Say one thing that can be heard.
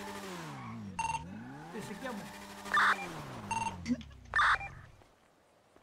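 A motorbike engine revs and its pitch rises and falls.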